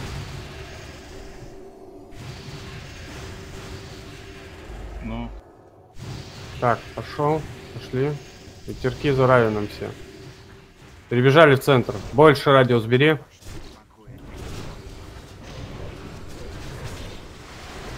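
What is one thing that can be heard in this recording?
Magical spells crackle and whoosh in a fight.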